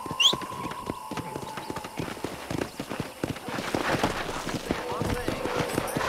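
Horse hooves gallop and thud on dry ground.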